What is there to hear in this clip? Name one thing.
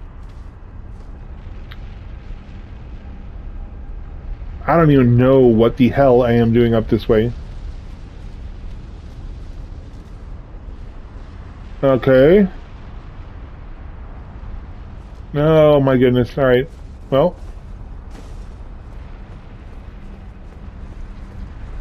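Molten lava rumbles low and steadily.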